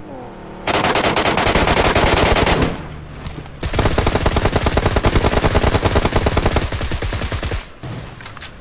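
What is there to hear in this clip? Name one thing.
A car engine roars as the car drives fast.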